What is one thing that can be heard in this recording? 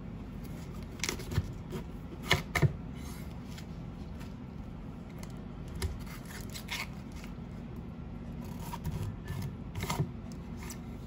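A knife taps on a cutting board.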